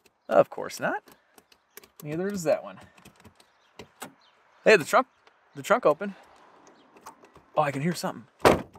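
A gear lever clicks into place.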